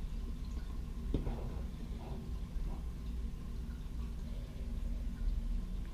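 Plastic pieces click softly as they are pulled from a packet.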